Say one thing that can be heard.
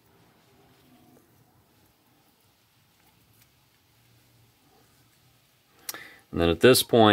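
Small metal parts click softly as they are handled.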